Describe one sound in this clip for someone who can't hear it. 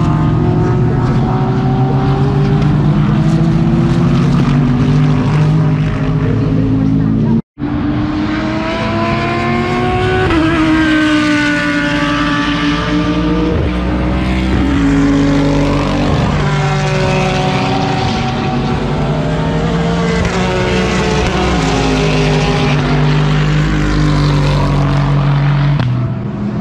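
Racing car engines roar loudly as the cars speed past, rising and falling in pitch as they shift gears.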